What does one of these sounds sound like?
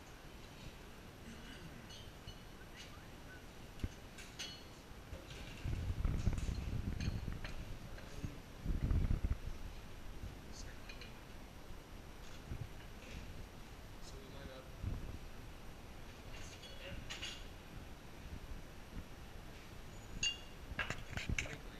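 Glasses and bar tools clink and knock on a counter.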